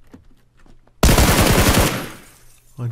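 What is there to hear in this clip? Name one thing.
A loud burst of gunfire rings out.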